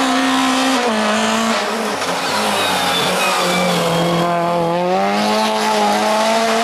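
A rally car engine revs hard up close, its pitch rising and dropping through gear changes.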